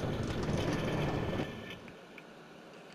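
A minecart rumbles along rails, then comes to a stop.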